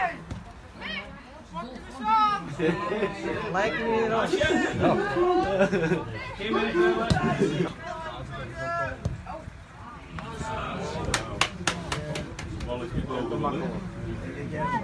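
Young girls shout and call out to each other outdoors.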